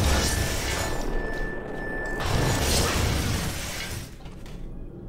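Gunfire rattles against a metal wire fence.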